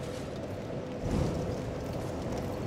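A fire whooshes alight.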